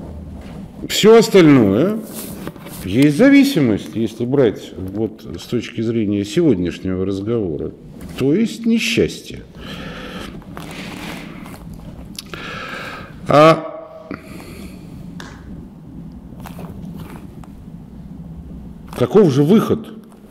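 A middle-aged man speaks calmly and close by, with pauses.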